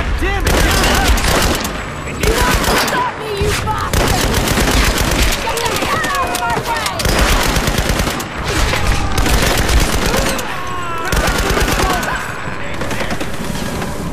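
An automatic rifle fires in rapid bursts.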